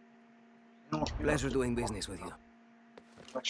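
A man says a short farewell in a friendly voice.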